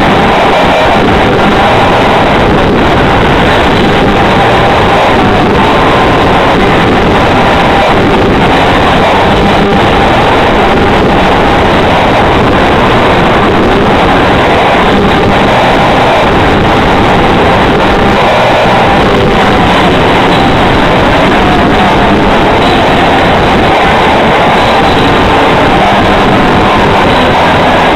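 A live band plays loud, distorted rock music.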